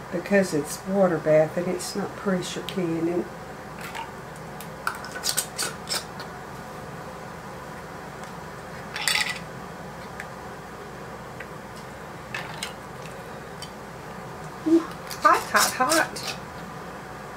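Glass jars clink and knock as they are handled.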